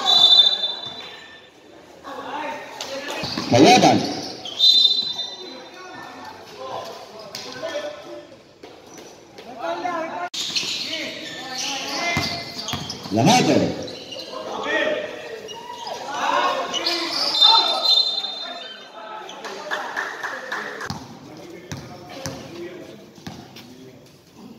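Players shout and call out to each other.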